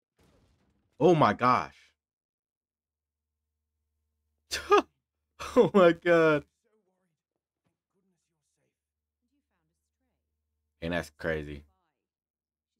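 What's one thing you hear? A young man speaks with animation in short bursts, close to a microphone.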